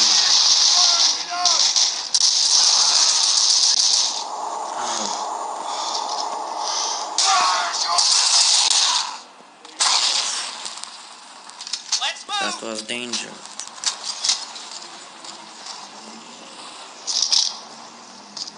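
A machine gun fires in loud rapid bursts.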